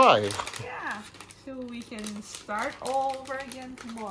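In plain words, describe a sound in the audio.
A paper packet rustles in a woman's hands.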